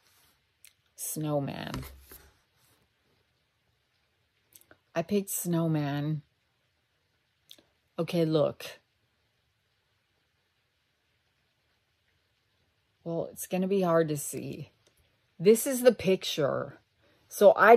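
A middle-aged woman speaks slowly and thoughtfully close to a microphone, pausing between phrases.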